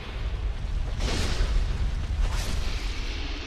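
A sword strikes with heavy metallic impacts.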